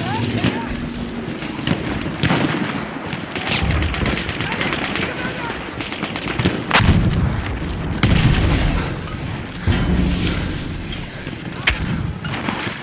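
Rifle shots crack nearby.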